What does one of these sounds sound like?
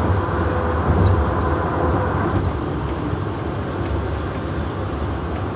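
A young woman talks closely and expressively.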